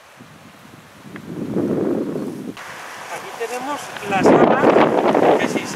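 Wind rustles through tree leaves.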